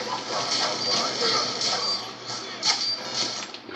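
Rapid gunfire bursts from a video game through a television speaker.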